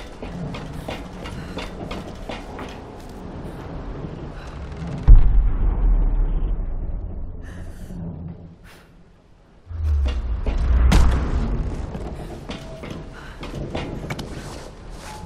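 Footsteps thud on wooden planks and tin sheets.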